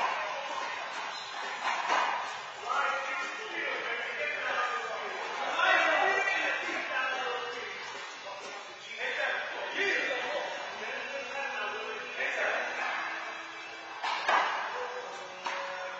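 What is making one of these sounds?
A handball smacks off a wall in an echoing court.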